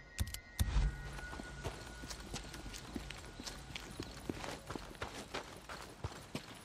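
Footsteps crunch quickly over gravel and grass.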